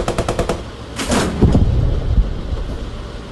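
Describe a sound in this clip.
An explosion booms nearby with a deep rumble.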